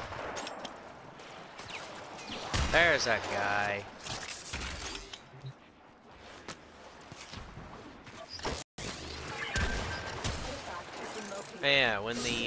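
A blade swishes and slashes in quick strikes.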